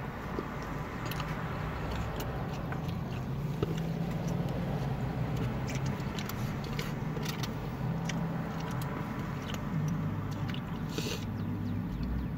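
A plastic takeout container crackles and clicks as food is picked from it.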